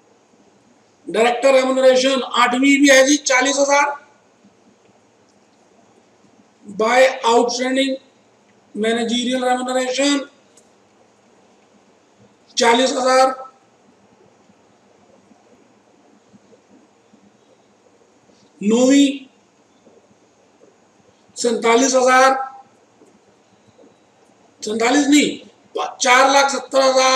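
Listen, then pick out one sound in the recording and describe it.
A middle-aged man lectures calmly, in short bursts with pauses.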